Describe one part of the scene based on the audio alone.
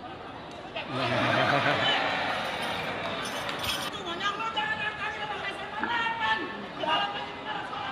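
A crowd of children chatters in the background.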